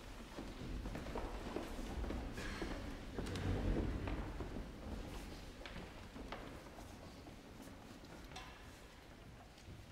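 A mixed choir sings in a large echoing hall.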